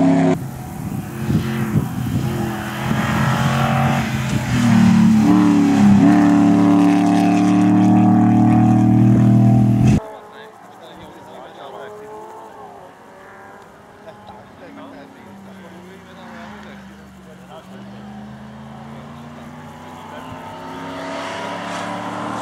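A rally car engine roars loudly as it speeds past, revving up and down through the gears.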